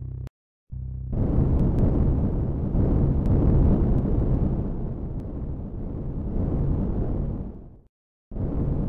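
A spacecraft thruster roars and rumbles.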